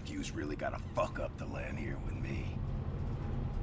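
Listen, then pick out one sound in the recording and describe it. A man speaks mockingly, close by.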